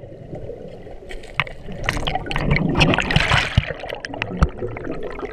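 Air bubbles burble up close by.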